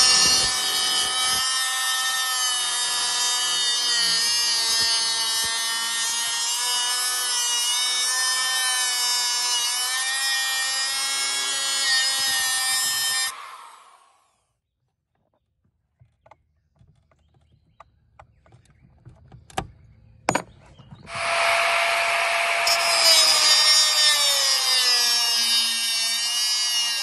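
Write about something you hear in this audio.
A grinding disc whines loudly against metal.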